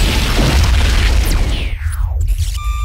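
A huge explosion roars and fire rumbles loudly.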